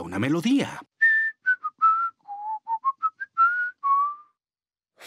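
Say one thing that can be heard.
A man whistles a short tune.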